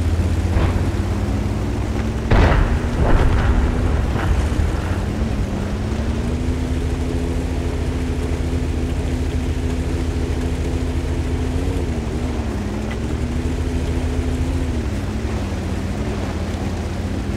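A tank engine rumbles steadily and changes pitch as the tank drives.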